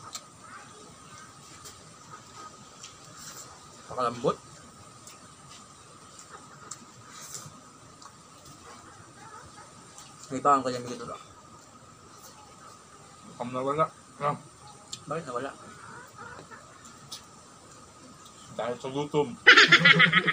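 Young men chew and smack their lips.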